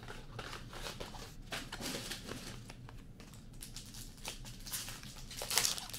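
Trading cards shuffle and slide against each other in hands.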